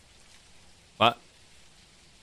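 A young man gives a short loud exclamation through a microphone.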